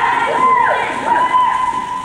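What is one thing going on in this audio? A young boy speaks briefly in an echoing hall.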